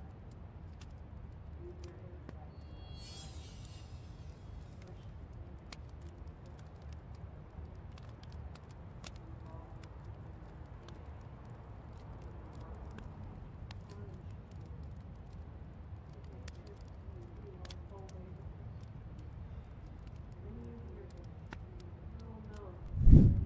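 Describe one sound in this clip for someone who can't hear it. A fire crackles softly in a fireplace.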